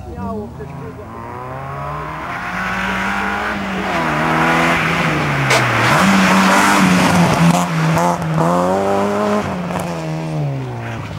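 A car engine revs hard, rising and falling as the car accelerates and shifts gears.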